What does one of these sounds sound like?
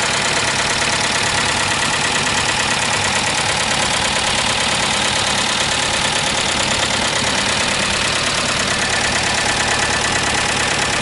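A car engine idles loudly and steadily up close, with a fast rattling clatter.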